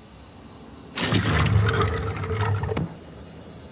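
A metal lever clanks.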